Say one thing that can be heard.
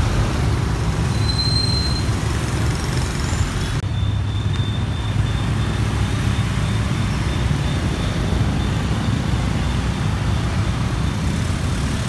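The V10 engine of a Lamborghini Huracán rumbles as the car rolls slowly through traffic.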